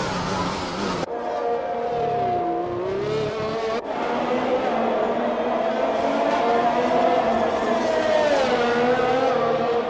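A racing car engine whines at high revs, rising and falling in pitch.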